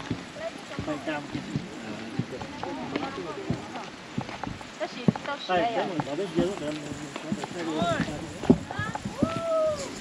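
Sandals slap on a dirt path with each footstep.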